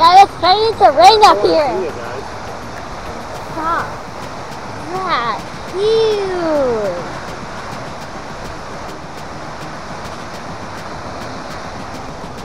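A waterfall roars steadily nearby.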